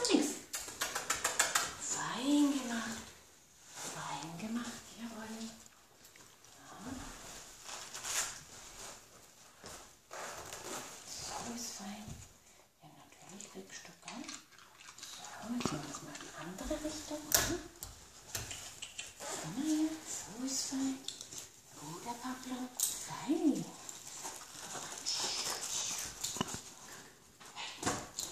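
A woman talks to a dog in a high, coaxing voice close by.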